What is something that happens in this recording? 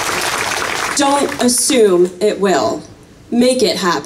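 A young woman speaks calmly into a microphone over a loudspeaker outdoors.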